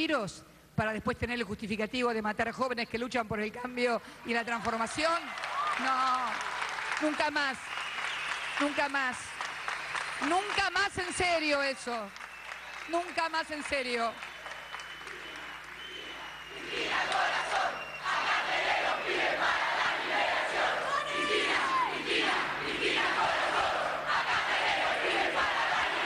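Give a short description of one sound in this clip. A large crowd cheers and chants loudly in an echoing space.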